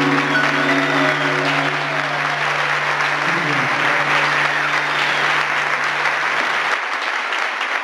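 A band holds a final ringing chord that fades out.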